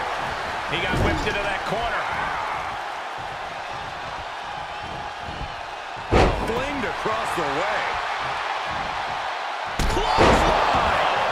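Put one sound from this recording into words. Bodies slam onto a wrestling ring mat with heavy thuds.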